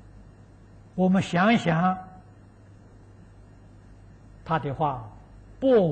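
An elderly man speaks calmly and slowly into a microphone, with long pauses.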